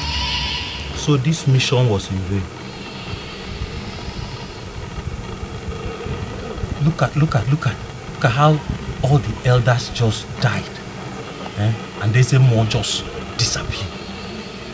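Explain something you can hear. A man speaks up close, with emotion and a pleading tone.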